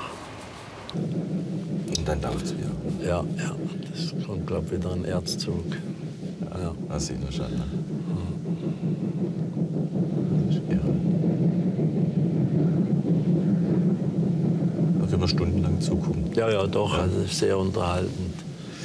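A steam locomotive chuffs heavily as it pulls a long train.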